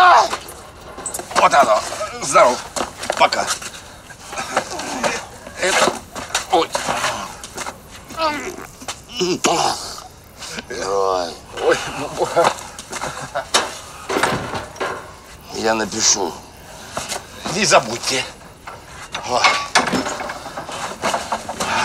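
An older man answers excitedly, close by.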